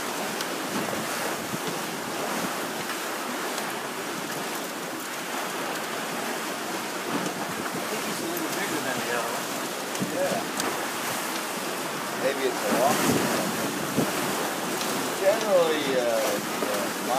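Waves splash against a boat's hull.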